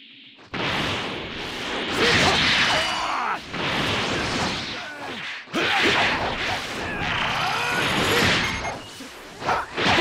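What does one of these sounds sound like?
Energy blasts whoosh and crackle in rapid bursts.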